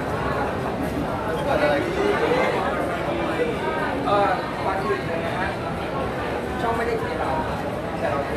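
A crowd of people chatter in a busy, echoing space.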